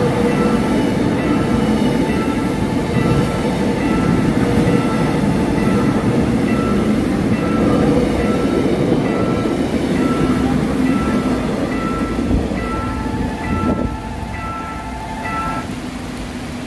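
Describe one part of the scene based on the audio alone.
A level crossing warning bell dings in a steady rhythm.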